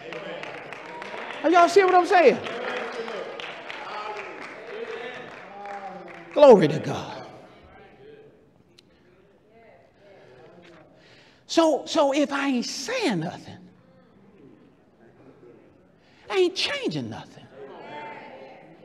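A man preaches with fervour through a microphone in an echoing hall, his voice rising in loud bursts.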